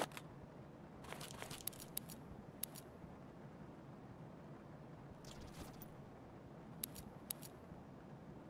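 Short clicks and rustles of gear being moved come now and then.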